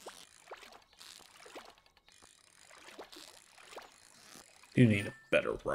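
A fishing reel clicks as a line is wound in.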